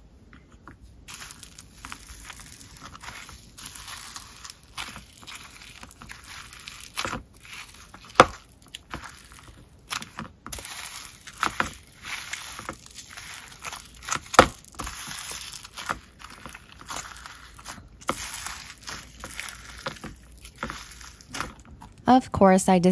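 Foam beads crunch and squish as fingers knead slime.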